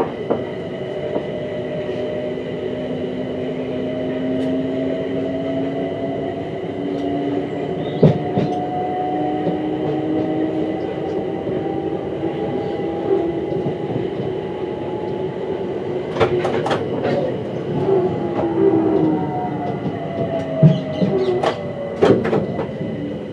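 Train wheels clatter over rail joints and points.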